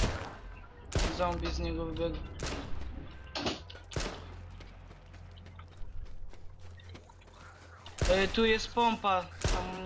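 A pistol fires sharp, loud shots.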